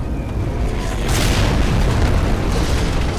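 A deep explosion booms close by.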